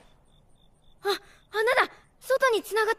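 A young boy shouts excitedly.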